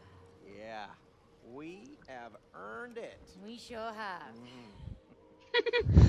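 A young woman speaks calmly and cheerfully.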